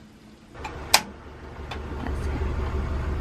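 A gas burner hisses softly.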